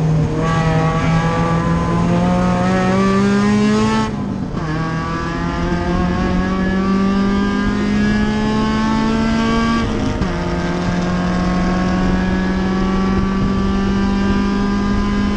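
A race car engine roars loudly from inside the cabin, rising in pitch through each gear and dropping briefly at each gear change.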